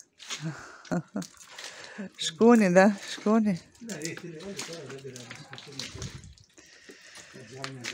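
Water splashes from a bottle onto the ground.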